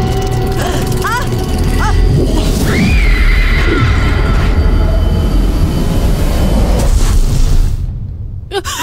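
A loud magical whoosh roars and shimmers.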